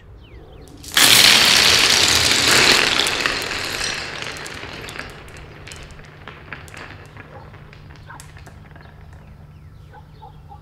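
Marbles spill out and clatter and roll across a hard stone floor.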